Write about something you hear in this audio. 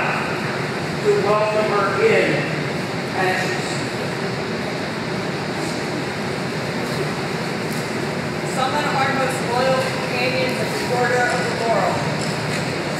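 A man speaks aloud to a group in a large echoing hall.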